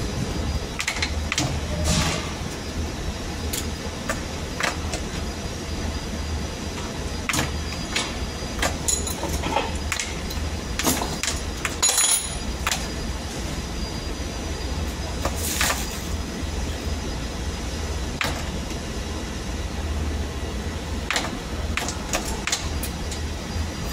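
A machine hums low and steady.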